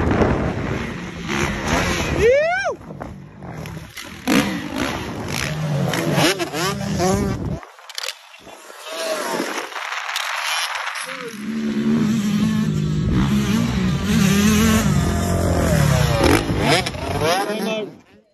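Dirt bike engines rev loudly and rise and fall in pitch.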